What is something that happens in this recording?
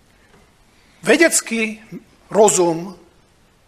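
A middle-aged man speaks close to a microphone.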